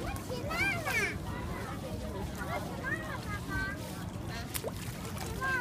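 Water laps gently against a stone edge.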